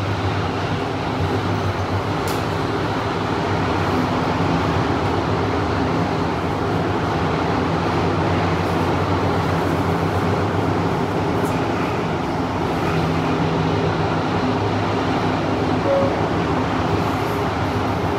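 A train rumbles and hums steadily as it rolls along the track.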